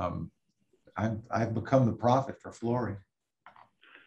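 A middle-aged man speaks calmly and close by, heard through a computer microphone.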